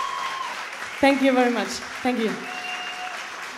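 A woman sings into a microphone, her voice sliding down in short phrases.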